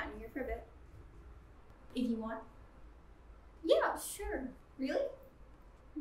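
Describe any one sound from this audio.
Another young woman speaks with animation, close by.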